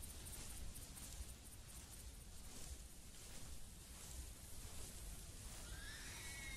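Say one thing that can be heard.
Leaves and undergrowth rustle as someone pushes through brush.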